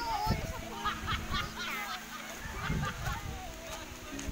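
Young girls talk and call out excitedly nearby, outdoors.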